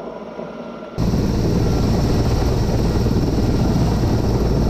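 A helicopter roars loudly close overhead.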